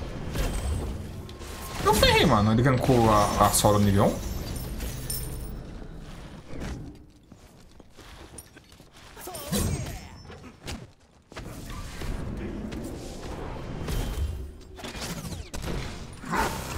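Game sound effects of spells and hits play in quick bursts.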